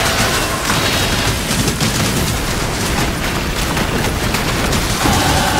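Magical blasts boom repeatedly.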